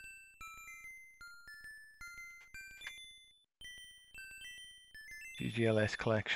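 A chirpy electronic game tune plays in short beeping notes.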